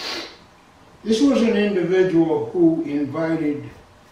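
An elderly man speaks slowly into a microphone.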